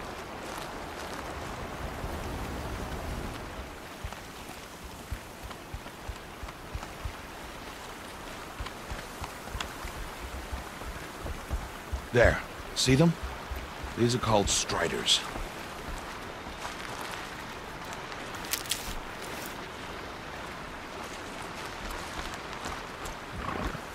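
Footsteps crunch along a dirt path.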